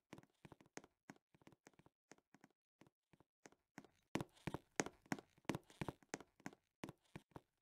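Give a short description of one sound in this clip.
Footsteps tap in quick, even steps.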